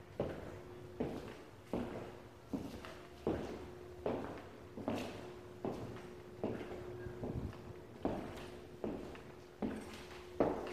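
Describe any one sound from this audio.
A man's footsteps thud steadily on a hard floor in an echoing empty room.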